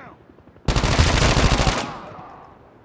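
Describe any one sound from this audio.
Gunfire bursts loudly from a game.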